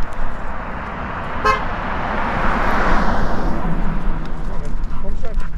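A car drives past on a nearby road, rising and fading.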